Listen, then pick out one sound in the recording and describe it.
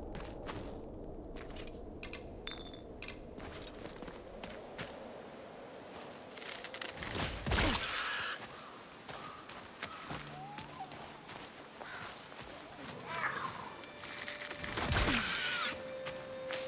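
Footsteps crunch over sand and stone.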